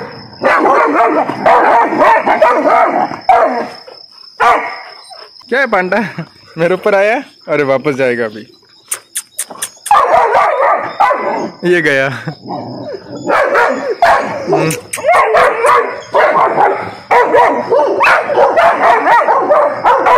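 Several dogs bark loudly and excitedly close by.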